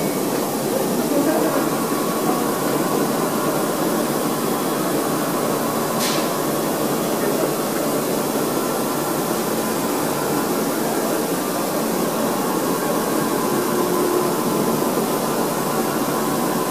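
A motor whines steadily as a large table turns.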